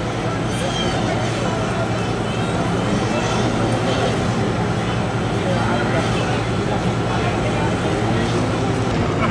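A fire hose sprays water in a steady rush.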